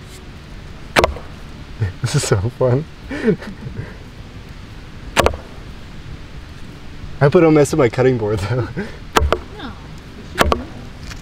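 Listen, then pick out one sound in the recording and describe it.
An axe chops into a soft squash with sharp, wet thuds.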